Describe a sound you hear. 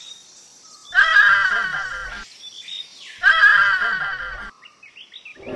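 Cartoon pigs squeal and grunt as they tumble.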